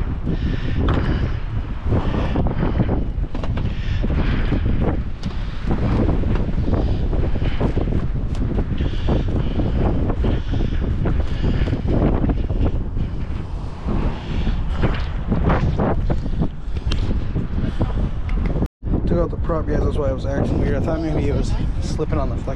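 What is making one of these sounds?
Wind blows outdoors, rumbling steadily against the microphone.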